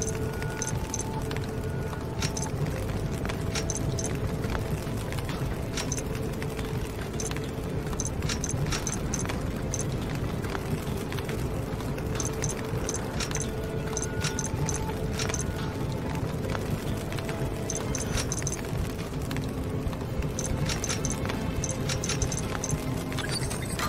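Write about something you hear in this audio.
Short electronic clicks and chimes sound as buttons are pressed.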